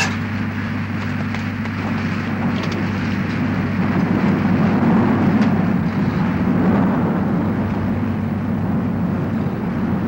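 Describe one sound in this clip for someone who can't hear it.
Rain hisses and patters steadily.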